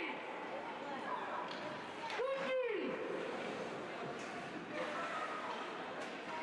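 Skates scrape and swish across ice in a large echoing hall.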